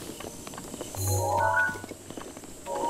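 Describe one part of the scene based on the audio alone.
A soft electronic chime sounds as a menu opens.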